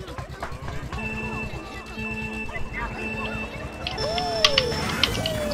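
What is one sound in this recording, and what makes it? Three countdown beeps sound one second apart, followed by a higher start tone.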